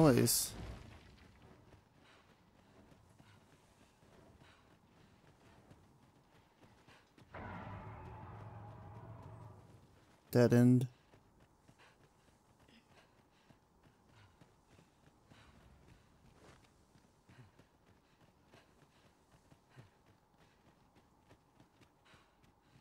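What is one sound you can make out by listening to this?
Footsteps crunch softly on rocky ground.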